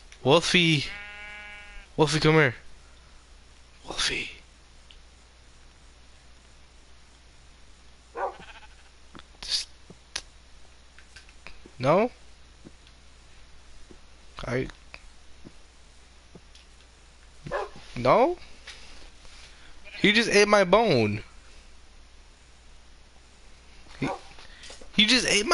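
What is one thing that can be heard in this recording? A wolf whines and yelps in short bursts.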